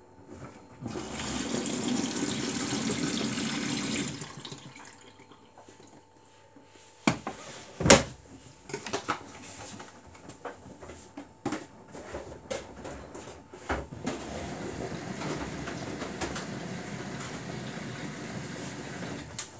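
A front-loading washing machine's drum turns, tumbling wet laundry with a swishing sound.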